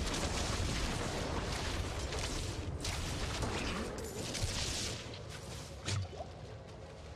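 Loud game combat noises crash and whoosh.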